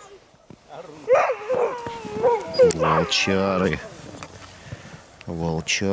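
A dog yelps sharply.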